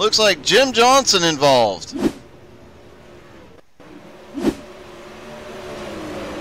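Race car engines roar and whine.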